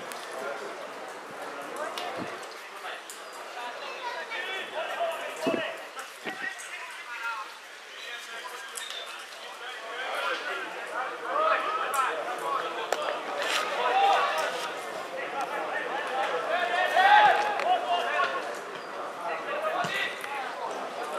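Footballers shout to each other from a distance.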